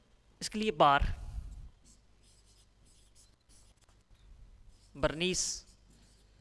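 A young man speaks with emphasis into a clip-on microphone.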